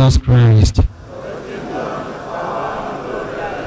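A congregation of men and women sings softly together.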